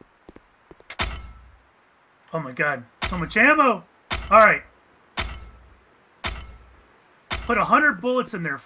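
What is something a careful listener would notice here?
A pickaxe strikes rock with sharp, heavy knocks.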